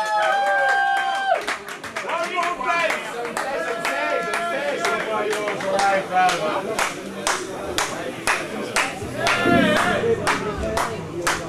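A young man sings.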